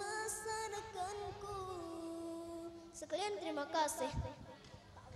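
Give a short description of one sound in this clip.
A young girl sings into a microphone, heard through a loudspeaker.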